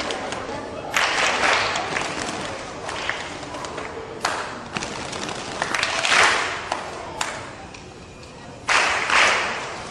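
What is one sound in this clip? Children clap their hands in rhythm.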